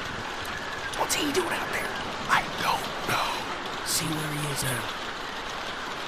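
A man speaks nervously, close by.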